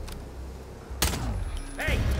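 A silenced gunshot cracks.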